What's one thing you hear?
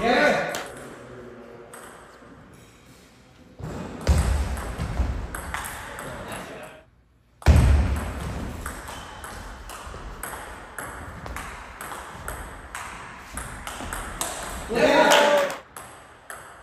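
A ping pong ball clicks back and forth off paddles and a table in a quick rally.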